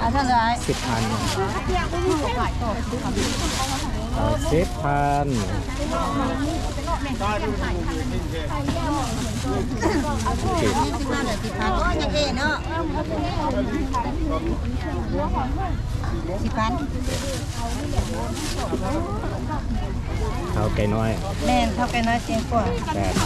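A crowd of people chatter all around outdoors.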